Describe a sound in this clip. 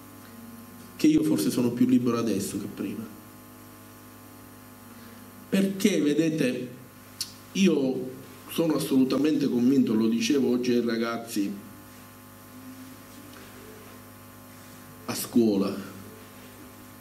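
A man speaks into a microphone over a loudspeaker in a hall, in bursts with pauses.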